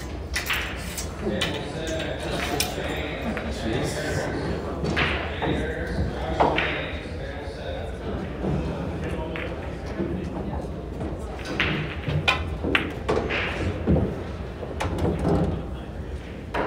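Pool balls clack together on nearby tables.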